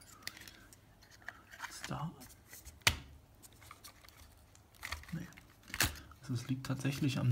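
Plastic parts tap and rattle as they are handled.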